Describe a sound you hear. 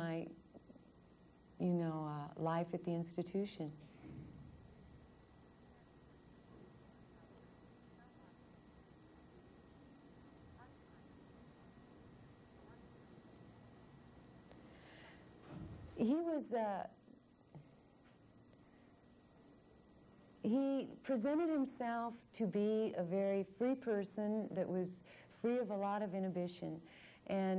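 A young woman speaks calmly and close to a microphone, pausing between phrases.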